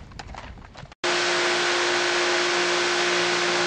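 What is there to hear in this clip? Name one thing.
Water sprays steadily from a hose.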